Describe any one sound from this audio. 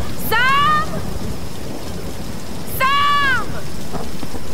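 A young woman shouts a name loudly twice, close by.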